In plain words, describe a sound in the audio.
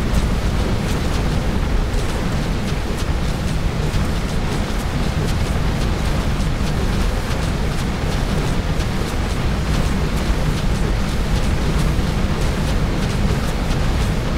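Magic spells crackle and burst in a game battle.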